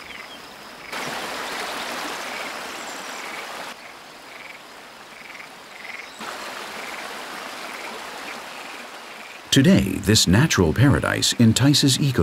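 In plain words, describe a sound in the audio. Paddles splash softly in calm water.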